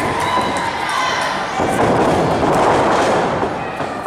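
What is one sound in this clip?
A body thuds onto a wrestling ring's mat.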